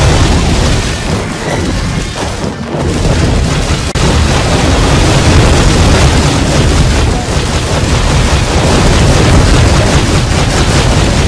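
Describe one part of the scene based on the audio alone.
Fiery whirlwinds roar and crackle.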